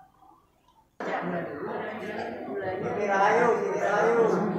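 A crowd of men and women chatter in an echoing hall.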